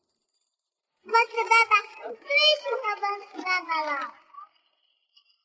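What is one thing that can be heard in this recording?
A young child speaks brightly and excitedly up close.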